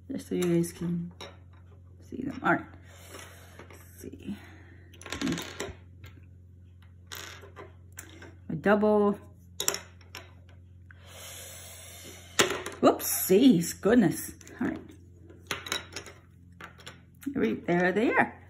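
Small plastic toys click as they are set down on a wooden table.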